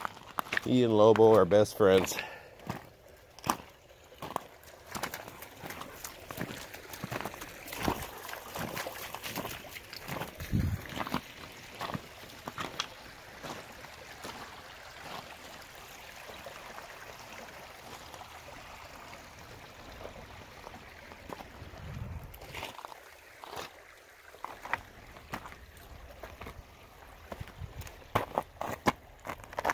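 A stream rushes nearby in a steady hiss.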